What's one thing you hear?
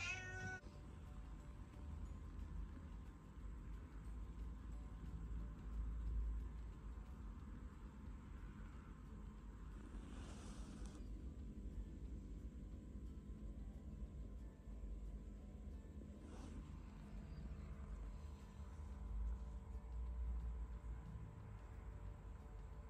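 A cat purrs softly close by.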